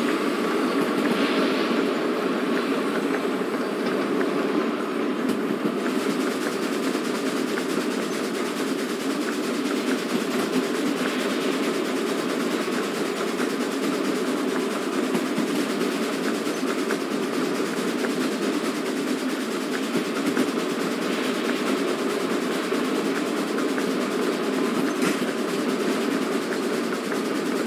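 A steam locomotive chugs and rumbles steadily along the track.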